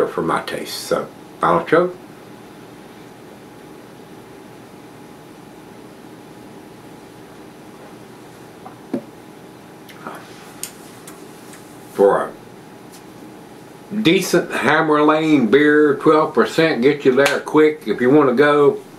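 An elderly man talks calmly and close to a microphone.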